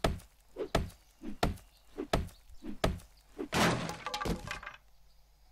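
A wooden club strikes a crate with repeated heavy thuds.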